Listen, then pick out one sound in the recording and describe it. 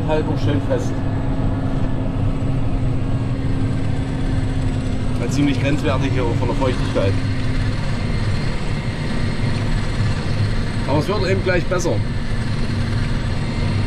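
A cultivator scrapes and churns through the soil.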